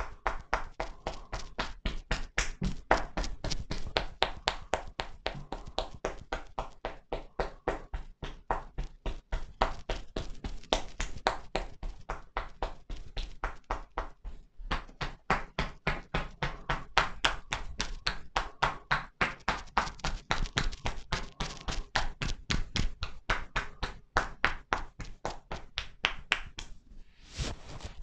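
Hands tap and chop rapidly on a person's back and shoulders.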